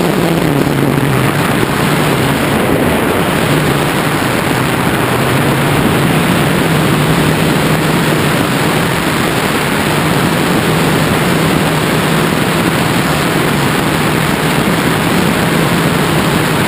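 Strong wind rushes loudly and steadily past a hang glider high in the air.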